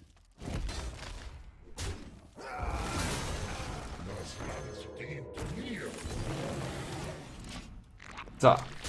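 Magical game effects whoosh and chime as cards are played.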